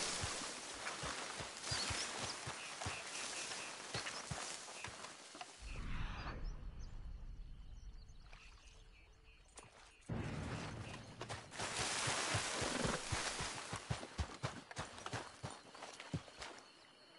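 Footsteps crunch quickly on sand and gravel.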